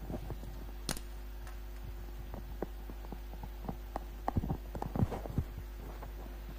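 Rustling and knocking sounds come close up as a man adjusts a headset microphone.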